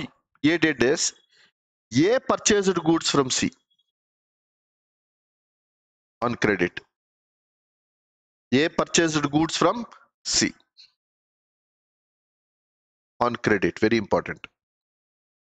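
A man speaks calmly into a close microphone, explaining in short phrases with pauses.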